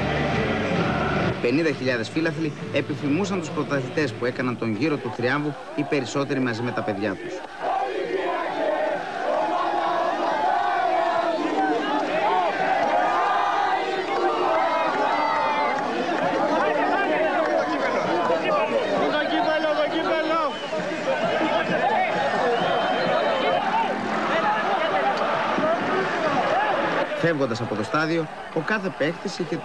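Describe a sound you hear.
A large crowd of men chants and sings loudly.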